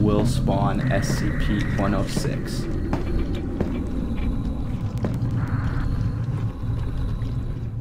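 A low droning rumble fills an echoing space.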